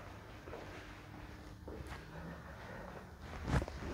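Footsteps shuffle softly.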